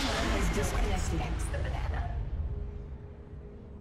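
A loud magical blast booms and rumbles, then fades away.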